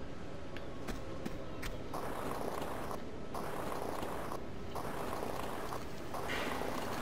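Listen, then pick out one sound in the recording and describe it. Hands grab metal rungs in a steady climbing rhythm.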